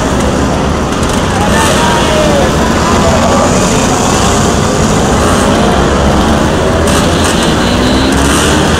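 Several scooter engines buzz and rattle as they ride past close by.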